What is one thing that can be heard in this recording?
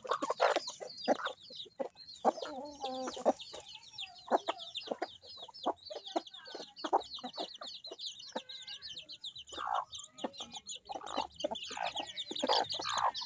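Chicks cheep rapidly and constantly nearby.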